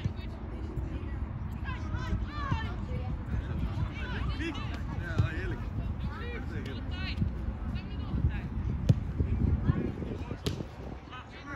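Young male players shout and call out to each other across the field.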